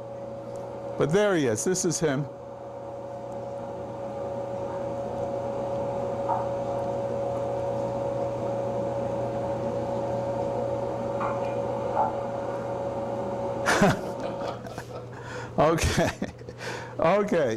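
A man's voice speaks through a loudspeaker in a room.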